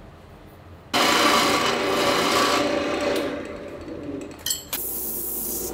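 A chisel scrapes loudly against spinning wood on a lathe.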